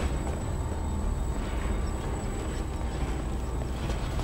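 Footsteps climb stone stairs.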